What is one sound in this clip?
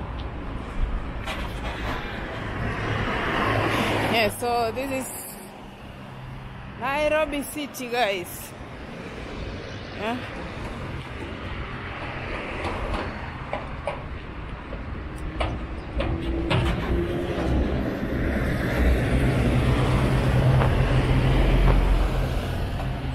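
Traffic rumbles steadily along a nearby road outdoors.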